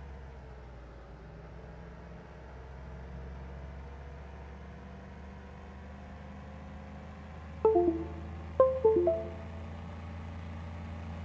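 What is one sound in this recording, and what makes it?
A car engine drones steadily and slowly rises in pitch as it speeds up.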